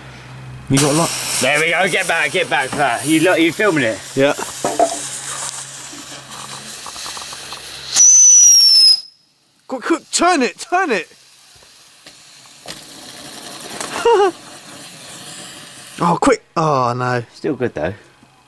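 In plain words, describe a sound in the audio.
A firework fountain hisses and crackles as it sprays sparks.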